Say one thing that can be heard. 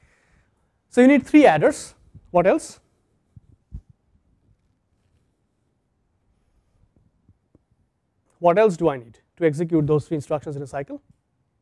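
A man speaks calmly into a clip-on microphone, lecturing with pauses.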